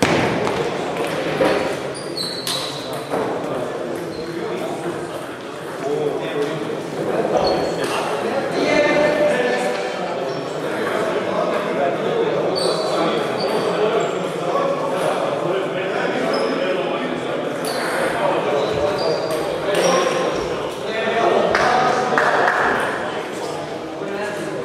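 Table tennis balls click on tables and bats in a large echoing hall.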